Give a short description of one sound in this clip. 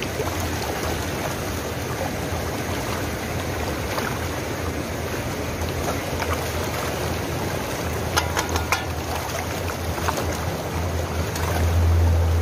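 Fish splash at the surface.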